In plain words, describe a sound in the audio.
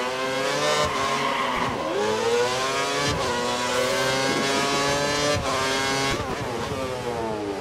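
A Formula One V8 engine revs hard through its gear changes.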